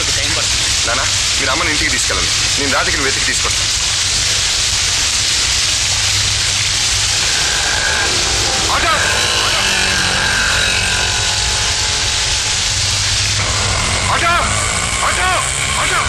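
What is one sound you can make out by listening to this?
A man calls out with emotion.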